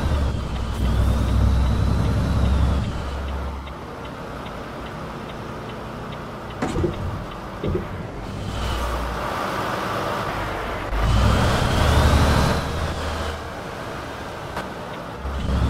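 A truck engine rumbles steadily, rising and falling in loudness.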